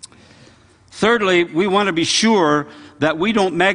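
An elderly man speaks with animation through a microphone in a large hall.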